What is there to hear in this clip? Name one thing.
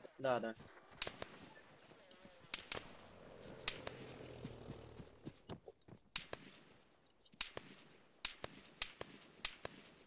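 Gunshots crack out one at a time.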